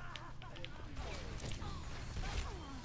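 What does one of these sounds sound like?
A loud energy blast bursts and crackles.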